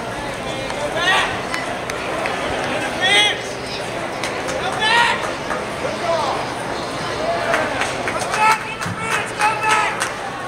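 Men shout across an open outdoor ballfield.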